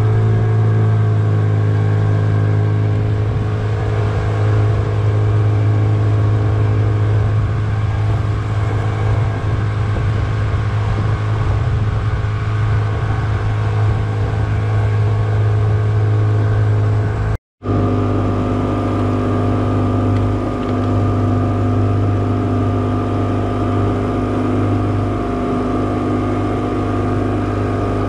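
Water splashes and churns in the boat's wake.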